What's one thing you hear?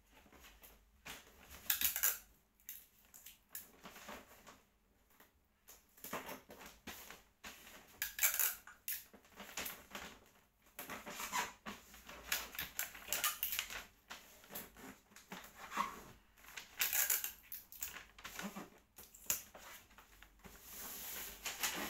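Small plastic toys click and clatter together.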